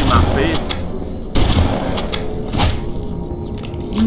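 A melee weapon swings with a heavy thud.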